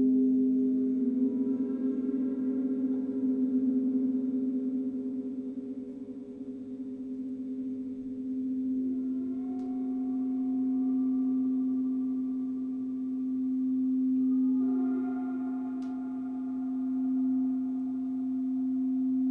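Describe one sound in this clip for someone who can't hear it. Gongs are struck softly and ring out with long, shimmering tones.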